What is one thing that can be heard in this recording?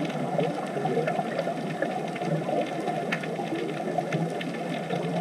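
Scuba divers' bubbles gurgle and burble steadily underwater.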